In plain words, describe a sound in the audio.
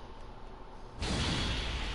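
A loud fiery blast bursts out and roars.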